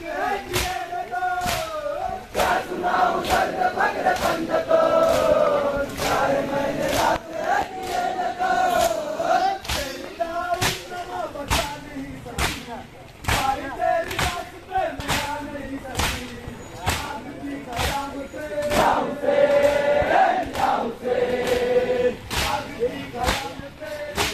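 A crowd of men chant loudly together outdoors.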